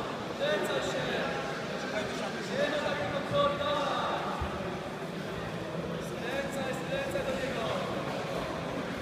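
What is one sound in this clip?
Men shout encouragement nearby in a large echoing hall.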